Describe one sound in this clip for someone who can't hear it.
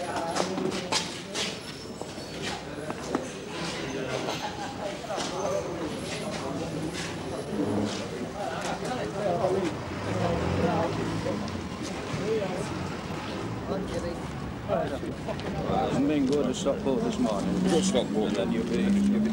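Several men talk close by, outdoors.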